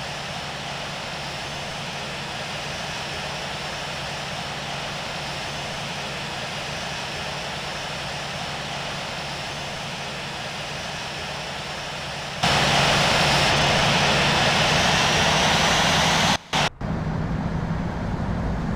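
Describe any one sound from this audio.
Jet engines roar steadily, growing louder and closer for a while before dropping back.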